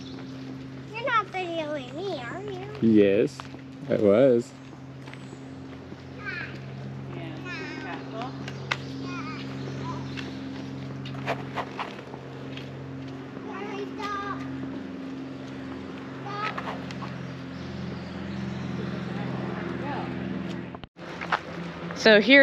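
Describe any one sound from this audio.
A young child calls out in a high voice nearby.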